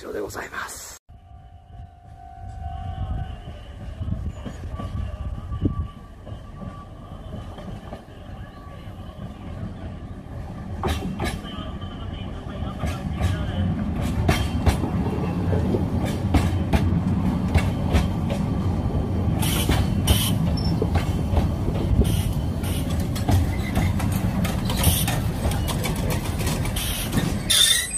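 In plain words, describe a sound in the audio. A train approaches and rumbles past close by, its wheels clattering over the rail joints.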